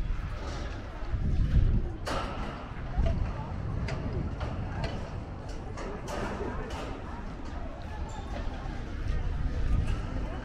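People chat in low voices at a distance.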